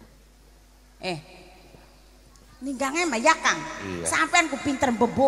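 A woman speaks with animation through a microphone and loudspeakers.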